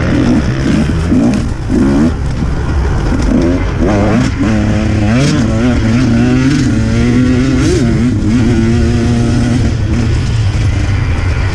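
Tyres rumble over a bumpy dirt trail.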